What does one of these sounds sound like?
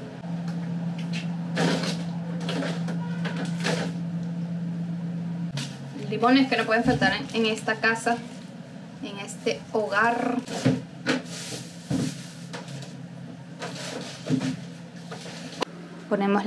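A refrigerator door opens and shuts.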